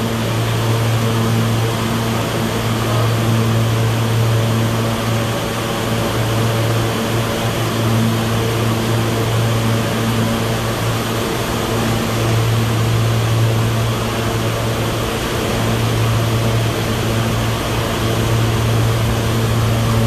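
A subway train idles with a steady low hum in an echoing station.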